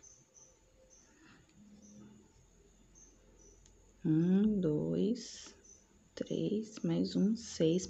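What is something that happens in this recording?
Yarn rustles softly as a crochet hook pulls it through.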